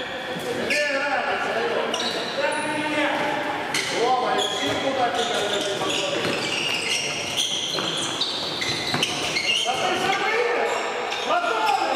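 Sports shoes squeak on a hard court floor.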